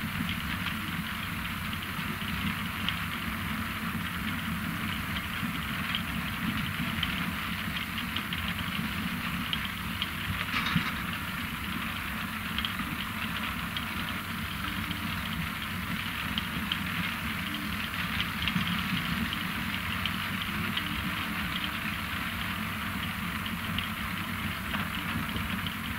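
A harvesting machine's engine drones steadily.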